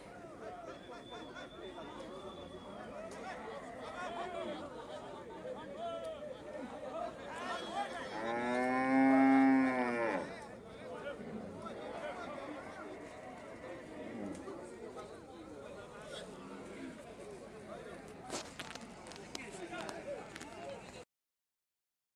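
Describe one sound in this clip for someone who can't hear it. A crowd of people talks and shouts outdoors.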